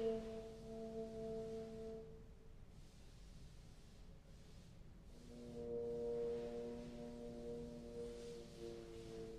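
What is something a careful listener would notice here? Trombones play sustained notes together.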